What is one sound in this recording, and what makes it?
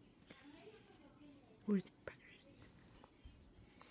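A hand rubs softly through a dog's fur.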